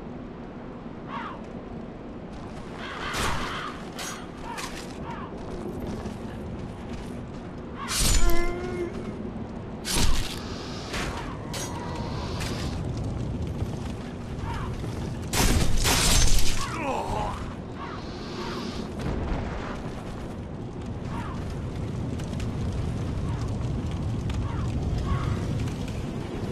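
Armoured footsteps clank on stone floors.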